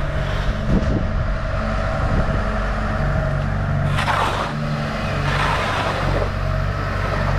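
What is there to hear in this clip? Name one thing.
Water splashes as an excavator bucket dumps mud into a river.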